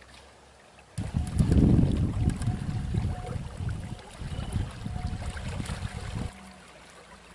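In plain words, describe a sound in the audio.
A small boat motor hums across the water.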